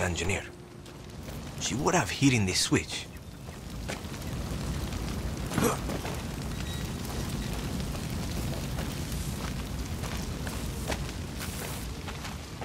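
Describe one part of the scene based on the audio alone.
Footsteps crunch over dirt and rock.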